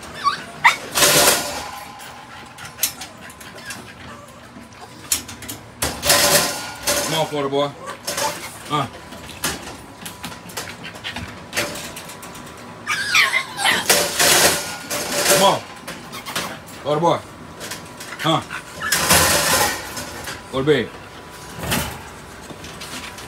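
A metal crate door rattles and clanks.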